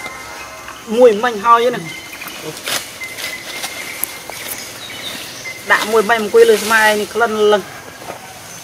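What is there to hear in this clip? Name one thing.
A young monkey gives high, wavering squeals close by, in two bursts.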